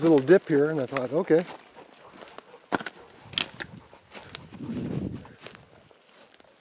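Footsteps crunch over dry grass and twigs.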